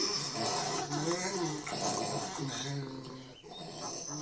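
A cartoon boy wails and sobs, heard through a television speaker.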